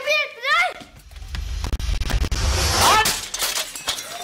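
A metal ladder clatters and bangs.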